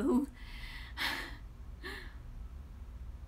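A young woman speaks briefly, close up.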